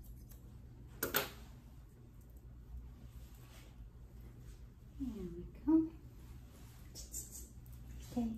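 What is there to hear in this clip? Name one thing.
Grooming scissors snip through a puppy's curly coat.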